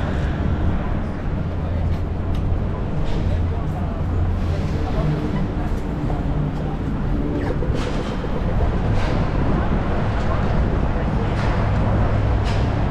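Footsteps tap on the pavement.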